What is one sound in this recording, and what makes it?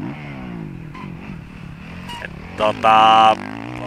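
A dirt bike's tyres churn through loose dirt.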